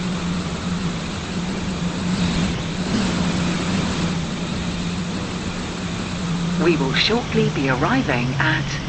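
A train engine hums steadily as a train approaches and passes close by.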